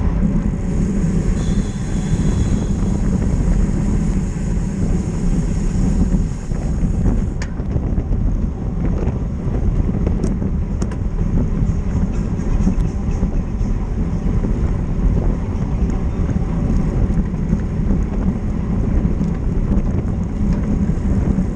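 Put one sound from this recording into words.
Wind roars and buffets loudly past a fast-moving bicycle.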